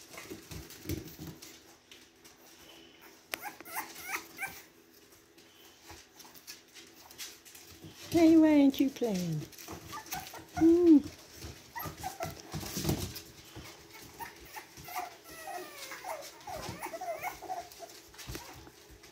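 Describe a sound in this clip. Puppy paws patter and scrabble on a hard floor.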